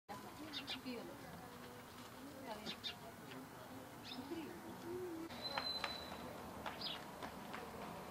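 A woman speaks with emotion nearby, outdoors.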